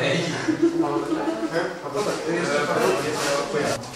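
A young man talks calmly.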